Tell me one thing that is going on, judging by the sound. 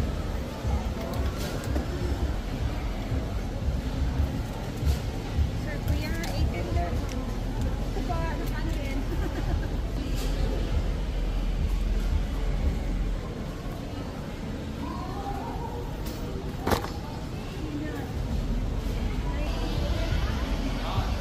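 Shoppers murmur faintly in the distance.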